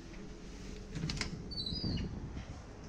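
A heavy metal door opens with a clunk.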